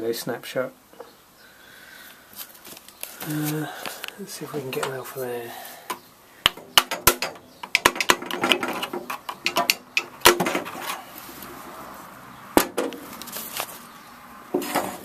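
Metal parts clink and knock as they are handled.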